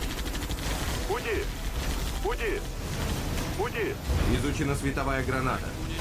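A laser weapon fires with a buzzing zap.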